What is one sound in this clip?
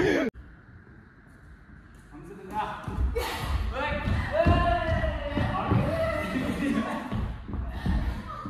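A badminton racket hits a shuttlecock in a large echoing hall.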